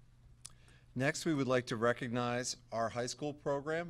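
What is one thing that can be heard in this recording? A man speaks clearly and steadily into a microphone in a large room.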